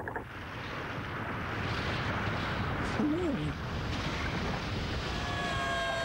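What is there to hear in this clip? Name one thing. Rocks tumble and rumble down a mountainside.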